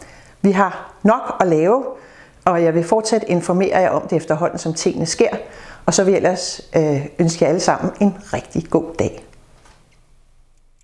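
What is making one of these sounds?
A middle-aged woman speaks calmly and clearly into a close microphone.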